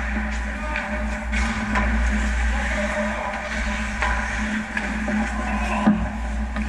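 Hockey sticks clack sharply against a puck in an echoing rink.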